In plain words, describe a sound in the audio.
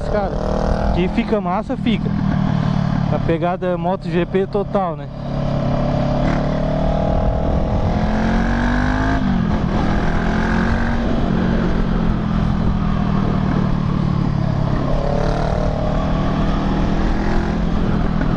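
A motorcycle engine hums steadily and rises and falls in pitch as it revs.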